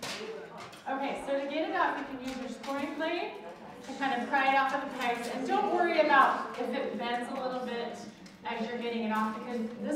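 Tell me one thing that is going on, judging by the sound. A woman speaks with animation through a microphone in a large room.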